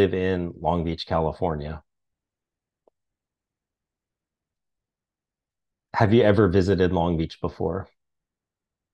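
A man speaks calmly and close to a microphone, in two short phrases.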